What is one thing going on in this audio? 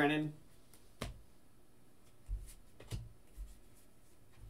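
Plastic card cases knock and click on a table.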